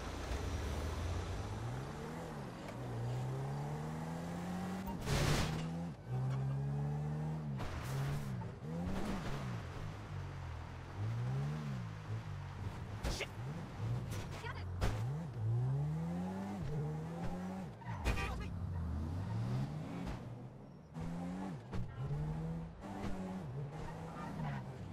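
A car engine revs up and down repeatedly as a car drives fast.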